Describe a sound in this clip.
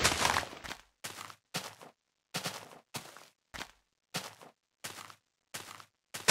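Footsteps tread on grass at an even pace.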